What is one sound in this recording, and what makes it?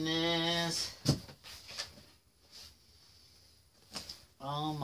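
Cardboard scrapes and thumps as a box is handled.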